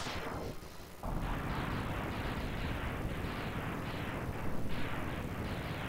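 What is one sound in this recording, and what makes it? Video game explosions burst again and again in quick succession.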